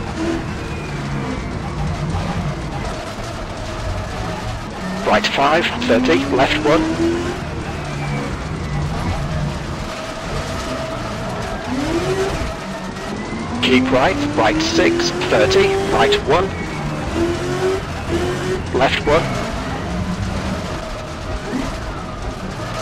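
A race car engine drones and revs steadily.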